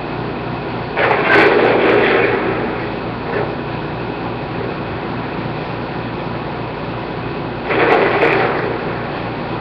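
A rifle shot blasts loudly and echoes, heard through a television speaker.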